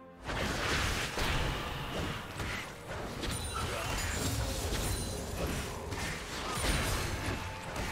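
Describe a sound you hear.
Fantasy battle sound effects clash and crackle.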